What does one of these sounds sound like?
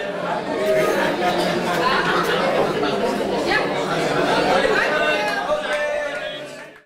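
A crowd of men and women chatter and laugh.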